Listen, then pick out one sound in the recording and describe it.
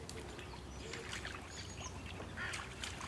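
A dog splashes in shallow water.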